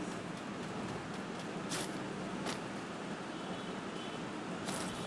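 Footsteps run quickly over grass.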